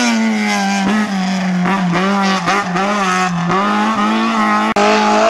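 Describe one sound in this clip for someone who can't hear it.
A small car engine revs hard and rasps, its pitch rising and dipping.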